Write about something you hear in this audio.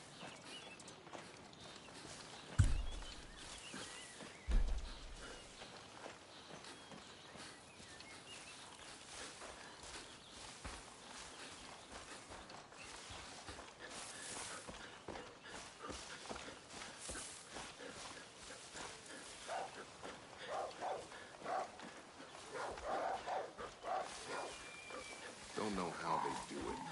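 Footsteps rustle through tall grass and brush.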